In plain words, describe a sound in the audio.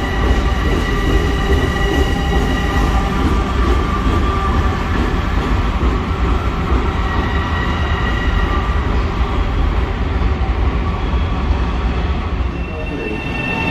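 A train rumbles and squeals as it pulls out into an echoing tunnel.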